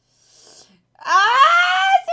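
A young woman exclaims loudly into a microphone close by.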